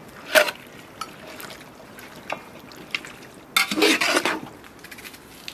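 A metal ladle scrapes and stirs chunks of meat in a metal pot.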